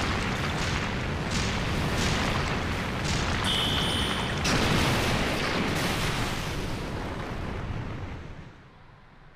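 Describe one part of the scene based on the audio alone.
A deep roaring rumble, like a blast, fills the air and then fades away.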